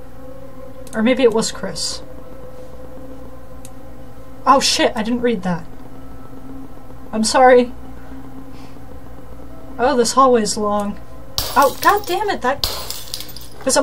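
A young woman talks into a microphone in short, lively bursts.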